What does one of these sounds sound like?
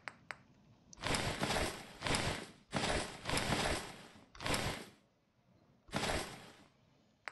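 Short soft clicks tick one after another.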